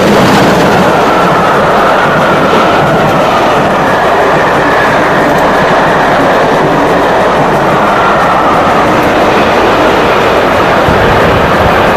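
Train wheels rumble and clatter over the rails as carriages rush past.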